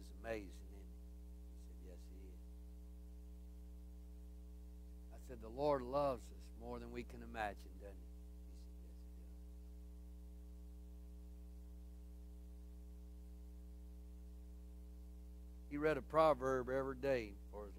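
A man speaks through a microphone in a large room, in short bursts with long pauses.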